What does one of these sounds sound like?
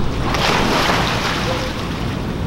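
A swimmer dives into a pool with a loud splash.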